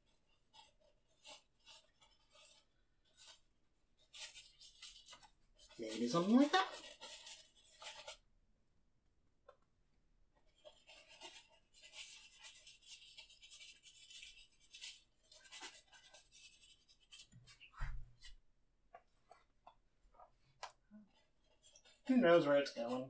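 A brush scrapes and swishes on canvas.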